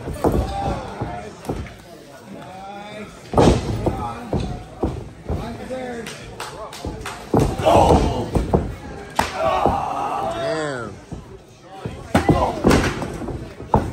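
Bodies thud heavily onto a floor.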